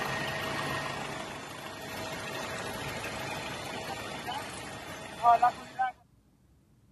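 A helicopter engine roars loudly up close.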